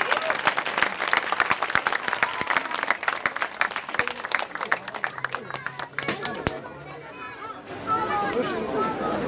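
A large crowd cheers and chatters loudly.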